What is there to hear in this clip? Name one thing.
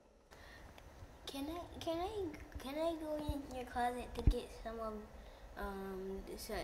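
A young boy talks with animation into a mobile phone.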